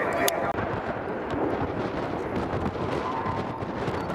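Jet engines roar overhead in the open air.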